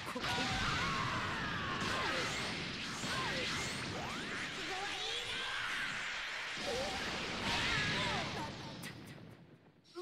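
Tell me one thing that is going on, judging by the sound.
Energy blasts roar and crackle loudly.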